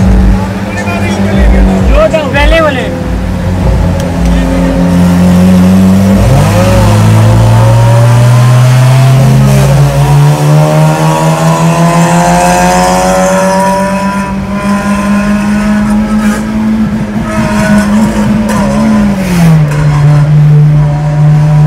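Car engines drone loudly close by, their pitch slowly rising and dropping as they rev.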